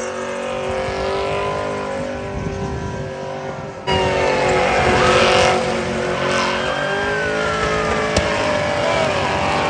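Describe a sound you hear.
A car engine revs hard and roars close by.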